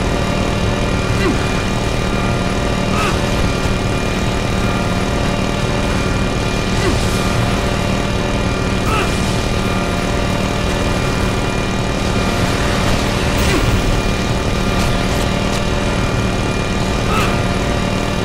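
A heavy machine gun fires in long, rapid bursts.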